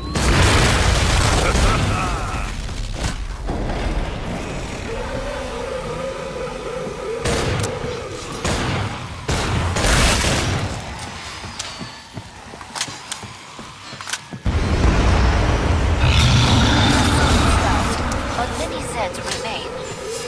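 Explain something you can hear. Pistols fire in sharp, rapid shots.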